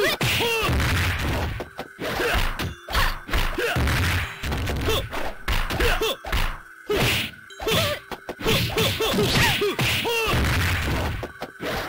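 Punches and kicks land with sharp smacks in a fighting game.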